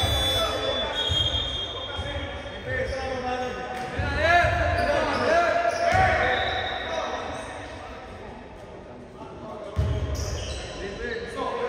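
Men on a basketball court shout and call out to each other.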